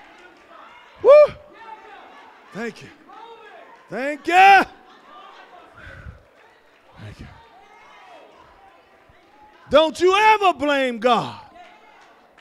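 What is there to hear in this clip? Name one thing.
A man shouts out loudly through a microphone.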